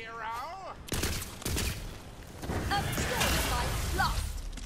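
Gunfire bursts rapidly.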